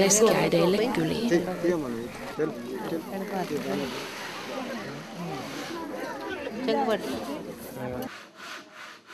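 Several women talk at once close by, with animation.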